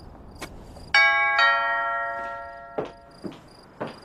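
A doorbell chimes.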